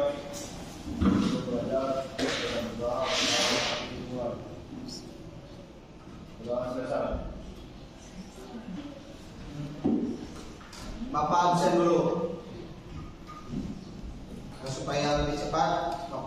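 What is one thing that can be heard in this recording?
A young man speaks calmly and clearly, with a slight room echo.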